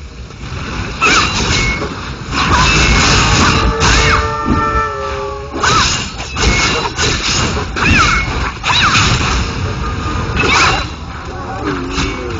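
Sword blows strike and clang in a fight.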